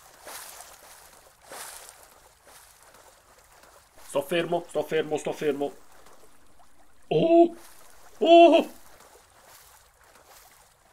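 Water splashes and sloshes with each swimming stroke.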